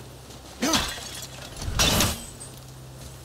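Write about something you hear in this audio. An axe strikes and smashes something with loud crashes.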